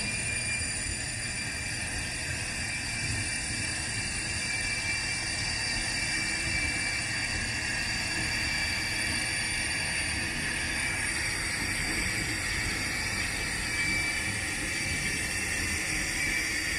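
A jet engine whines steadily and grows louder as a small plane taxis closer.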